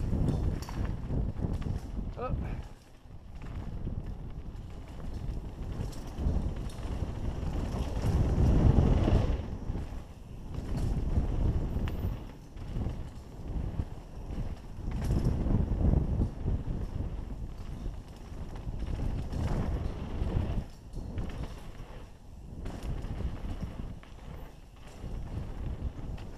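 Bike tyres rumble and crunch over a dirt trail.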